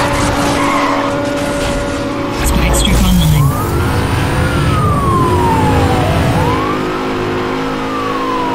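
A sports car engine roars at high speed, revving up through the gears.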